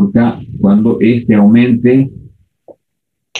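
An elderly man speaks calmly through a microphone, explaining.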